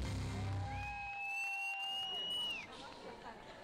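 Singers belt out a rock song with a band on stage.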